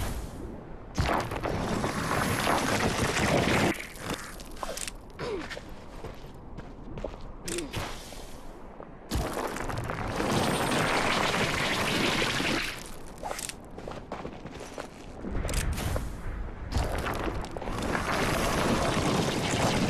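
Stone pillars rise out of sand with a low grinding rumble.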